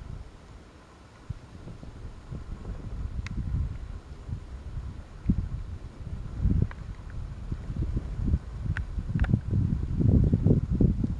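Wind gusts against the microphone outdoors, rumbling low.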